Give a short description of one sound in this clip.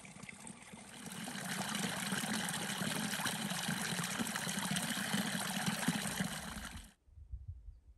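Water trickles and splashes into a small pool.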